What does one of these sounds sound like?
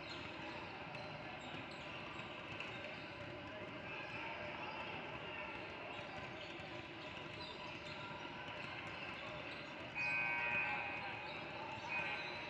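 Basketballs bounce on a hardwood floor in a large echoing hall.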